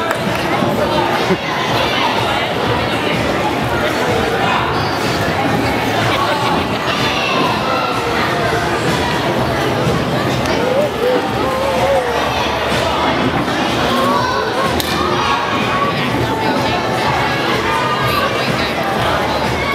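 A crowd chatters throughout, echoing in a large hall.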